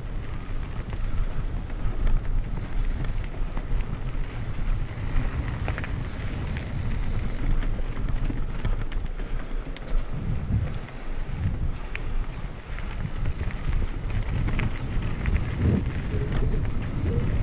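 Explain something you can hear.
Wind rumbles outdoors.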